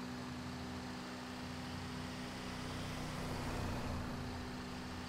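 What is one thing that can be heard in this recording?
A car passes by in the opposite direction.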